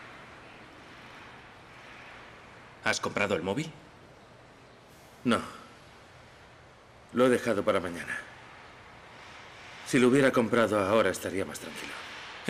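A second young man answers calmly, close by.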